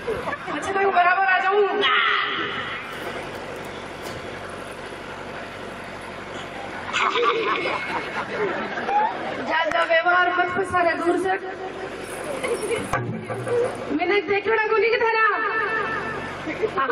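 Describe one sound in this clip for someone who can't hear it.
A woman sings loudly through a loudspeaker.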